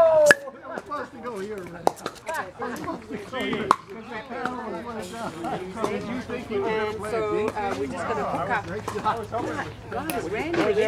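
Older men chat casually outdoors.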